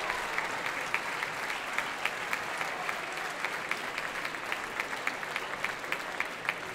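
A large choir sings together in a big hall.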